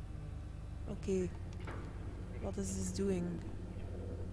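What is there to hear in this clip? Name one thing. A young woman speaks calmly into a headset microphone, close by.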